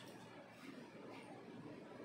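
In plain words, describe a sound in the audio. A spoon scrapes inside a small cup.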